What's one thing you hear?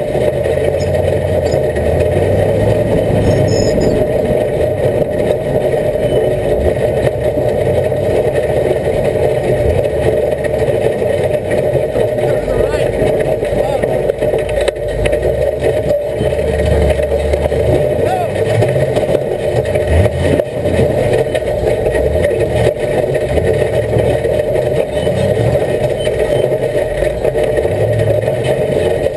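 A vehicle's engine rumbles steadily while driving slowly over rough ground.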